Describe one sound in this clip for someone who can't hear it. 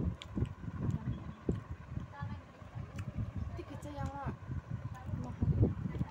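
A man eats rice with his fingers, with soft squishing sounds.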